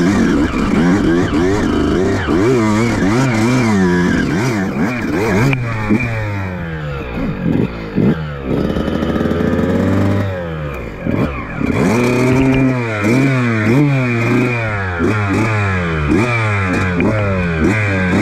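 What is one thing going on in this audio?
A motorcycle engine revs up and down, rising and falling quickly.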